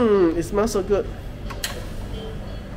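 A button on a coffee machine clicks.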